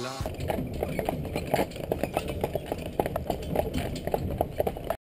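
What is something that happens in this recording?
Carriage wheels rumble along the road.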